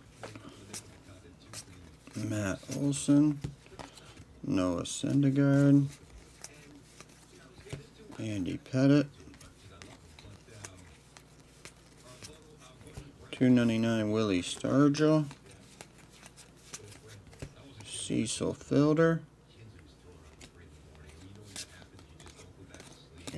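Cards shuffle and rustle softly in a pair of hands.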